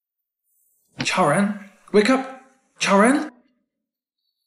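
A young man calls out urgently and closely, trying to wake someone.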